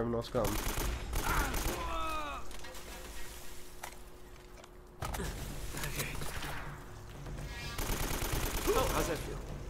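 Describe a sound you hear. Gunshots ring out in bursts.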